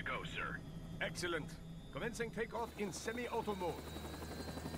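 A second man answers over a headset radio.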